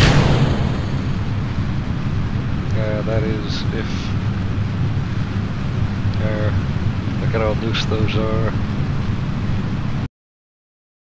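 A rocket engine roars with a steady, deep rumble.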